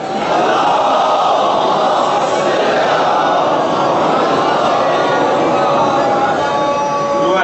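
A man speaks loudly and with passion into a microphone, heard through loudspeakers.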